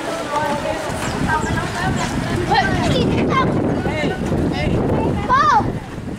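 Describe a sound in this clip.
Feet splash and slosh through shallow floodwater.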